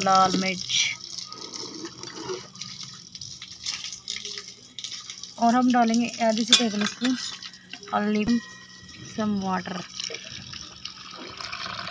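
A spoon scrapes and clinks against a metal bowl.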